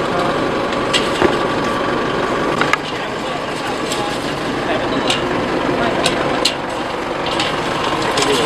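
A metal gate rattles and clanks as a man climbs it.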